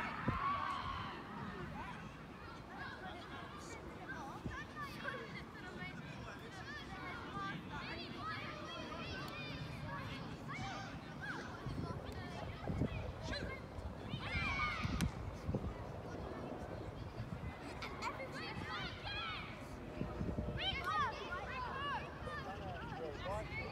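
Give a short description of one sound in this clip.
Children shout and call out across an open outdoor pitch.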